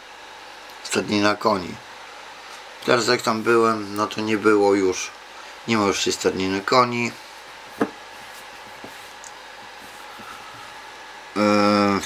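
A middle-aged man talks close to the microphone, calmly and in bursts.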